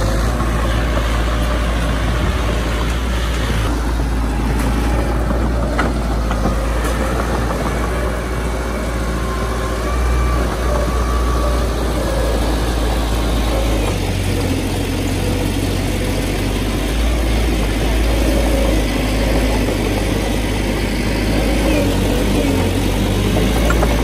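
A small bulldozer's diesel engine rumbles steadily close by.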